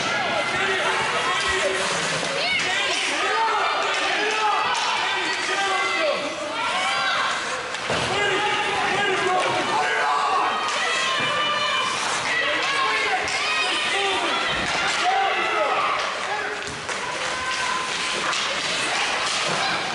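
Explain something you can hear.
Spectators shout and cheer loudly in an echoing rink.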